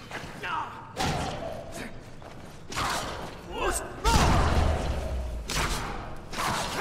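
Heavy blows thud during a scuffle.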